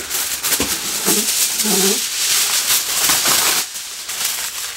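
A plastic bag rustles loudly.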